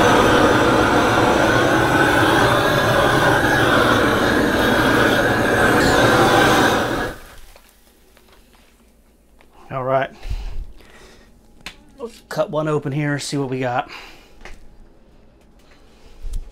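Meat sizzles on a hot griddle.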